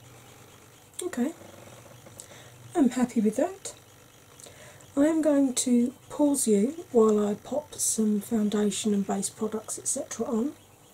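A woman speaks calmly close to a microphone.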